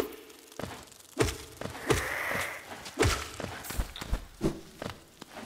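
Soft thuds and thumps come as a small game character jumps and lands.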